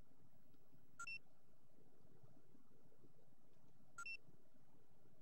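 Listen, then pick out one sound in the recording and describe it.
A short electronic menu beep chimes twice.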